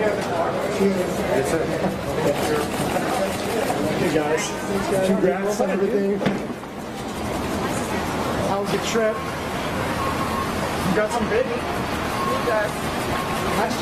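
A crowd of men and women talk over one another nearby.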